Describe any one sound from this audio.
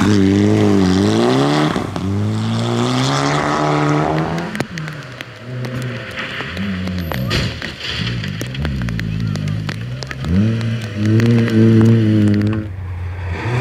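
A rally car engine roars loudly as it speeds past on a gravel road.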